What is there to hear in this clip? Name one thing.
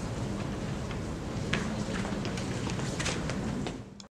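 A woman speaks through a microphone, announcing.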